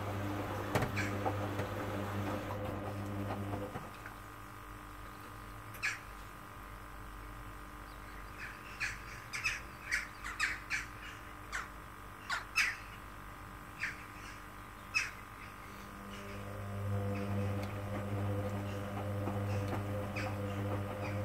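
A washing machine motor hums as the drum spins.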